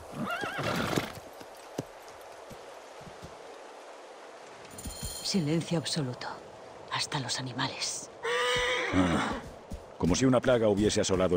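Horse hooves clop slowly on a dirt path.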